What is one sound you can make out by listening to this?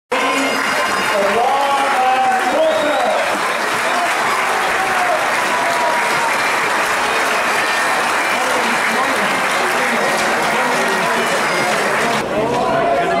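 A crowd applauds loudly outdoors.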